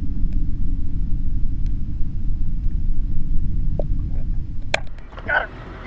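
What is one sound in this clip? Water rumbles in a low, muffled way, as if heard underwater.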